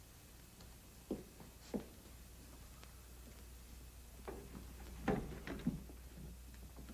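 Footsteps cross a wooden floor.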